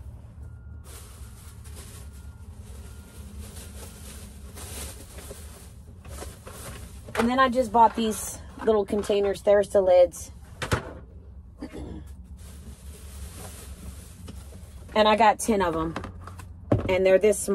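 Plastic containers rustle and knock.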